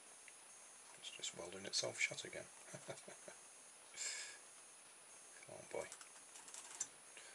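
Small metal parts click and scrape as a hand handles them.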